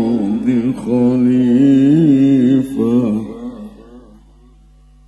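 An elderly man chants in a long, wavering melodic voice through a microphone, with echo in a large hall.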